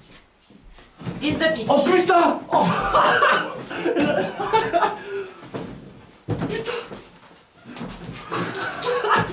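A group of men cheer and shout excitedly nearby.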